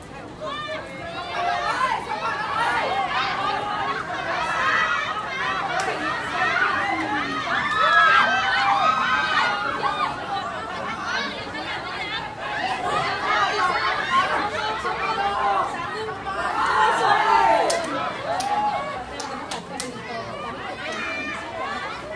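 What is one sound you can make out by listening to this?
Young women shout and call out excitedly outdoors.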